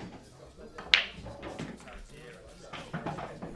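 Pool balls clack against each other and roll across the table.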